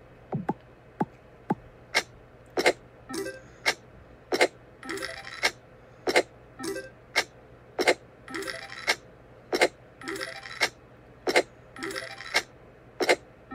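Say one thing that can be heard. Short electronic chimes and jingles ring out again and again.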